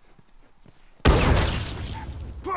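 A fiery blast bursts out loudly and then roars on.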